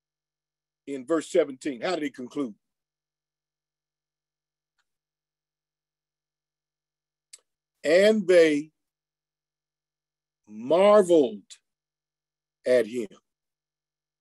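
A middle-aged man speaks with animation in short bursts, close to a microphone.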